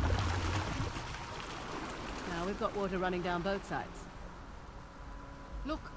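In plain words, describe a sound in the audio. Water rushes down a stream.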